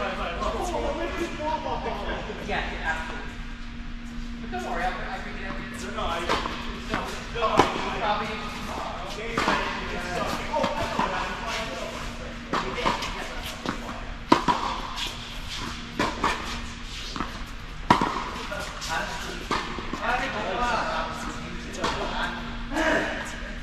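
Tennis balls are struck with rackets, each hit echoing in a large indoor hall.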